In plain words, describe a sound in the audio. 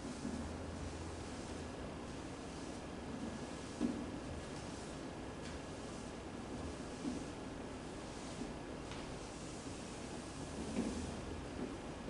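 A felt eraser rubs and swishes across a chalkboard.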